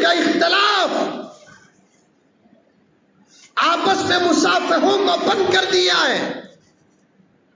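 A man speaks with animation into a microphone, heard through a loudspeaker.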